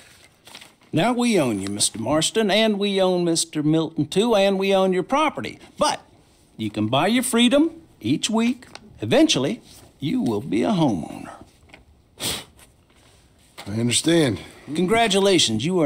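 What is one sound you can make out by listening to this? A middle-aged man speaks calmly and clearly, close by.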